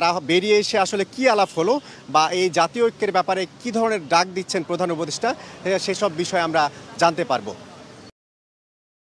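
A man reports through a microphone, speaking quickly.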